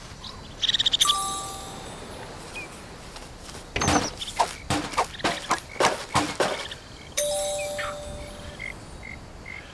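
A cheerful chime rings out.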